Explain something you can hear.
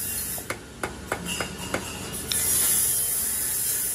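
A hammer taps on metal.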